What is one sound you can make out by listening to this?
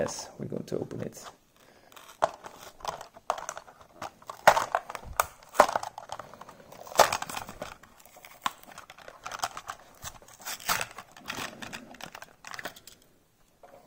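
Stiff plastic packaging crinkles and crackles as it is pried open.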